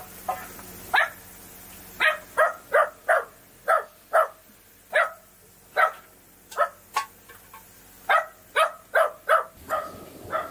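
Wood is split with sharp, repeated chopping blows.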